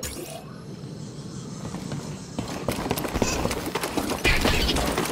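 Footsteps thud on a metal grate.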